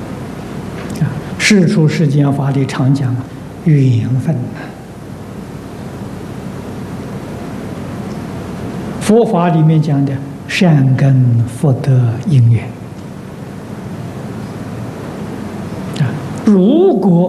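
An elderly man speaks calmly into a microphone, with long pauses.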